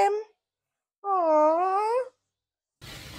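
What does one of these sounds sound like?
A man cries out loudly.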